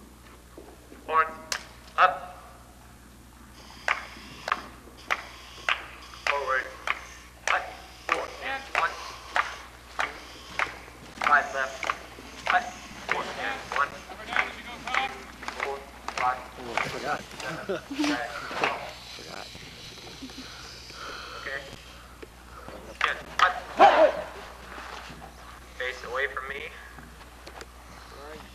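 A marching band plays brass and woodwind instruments outdoors.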